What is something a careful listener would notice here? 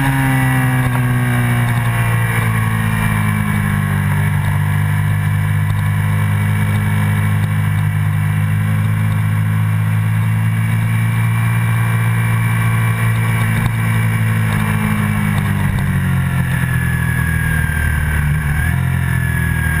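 A motorcycle engine roars at high revs, dropping and rising in pitch through the gears.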